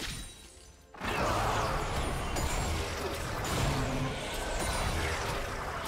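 Video game spell effects whoosh and crackle during a fight.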